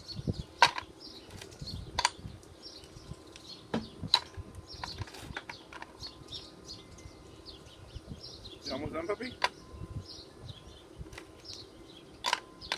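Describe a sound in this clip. Small plastic toys clatter and knock against a plastic bucket.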